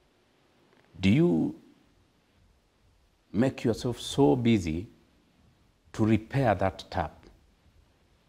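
A man speaks calmly into a close microphone, in short bursts with pauses.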